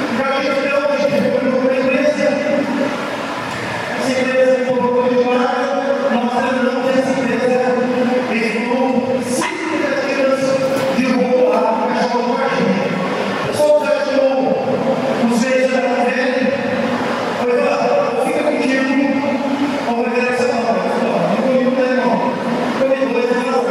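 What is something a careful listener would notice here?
A man speaks with animation through a microphone and loudspeakers in a large echoing hall.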